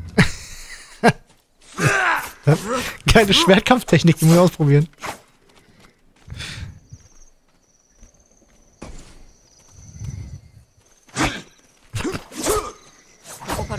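Swords clash in sharp metallic strikes.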